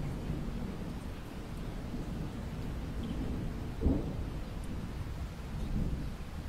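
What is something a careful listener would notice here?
Rain patters steadily against a window pane.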